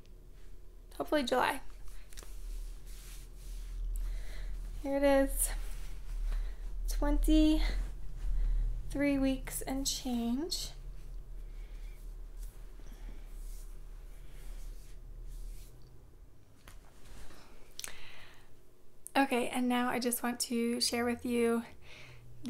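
A young woman talks calmly and cheerfully, close to the microphone.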